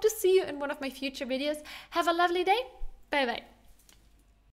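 A young woman speaks cheerfully and closely into a microphone.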